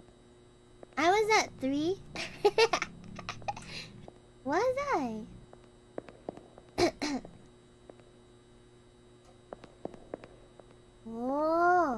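A young woman squeals and laughs excitedly into a microphone.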